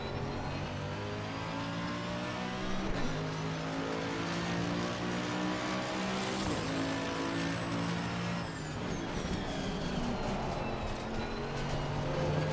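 A racing car engine roars, climbing in pitch and dropping back as it shifts gears.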